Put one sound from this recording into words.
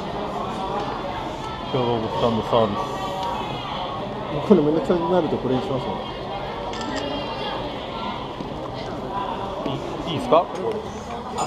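A crowd murmurs.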